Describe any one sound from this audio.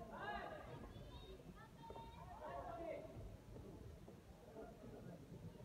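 Men shout instructions from ringside in a large echoing hall.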